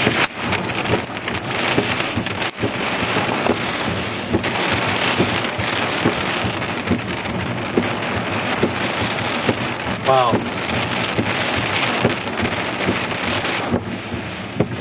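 Strong wind roars around a car.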